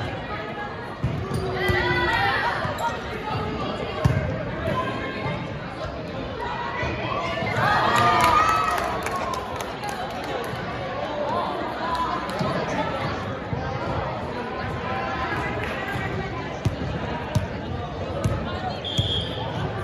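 A volleyball is bumped with dull slaps.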